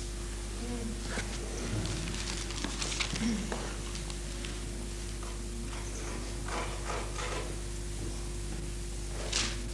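A woman reads aloud calmly at a distance.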